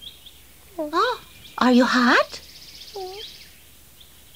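A high, squeaky puppet voice chirps and talks in short bursts.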